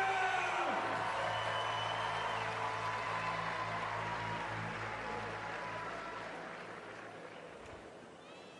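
A large crowd cheers and applauds outdoors.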